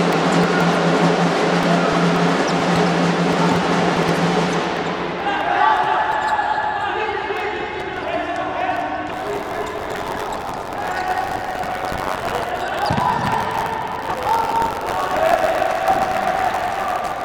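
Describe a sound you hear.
A crowd cheers and roars in a large echoing hall.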